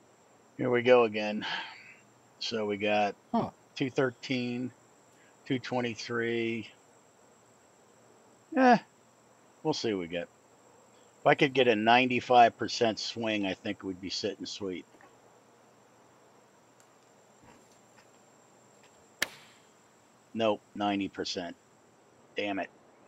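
A middle-aged man talks casually into a close microphone, in bursts with pauses.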